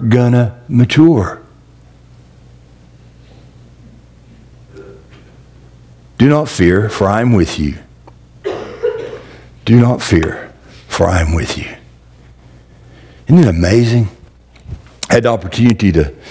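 A middle-aged man preaches through a microphone, pausing between phrases in a large echoing hall.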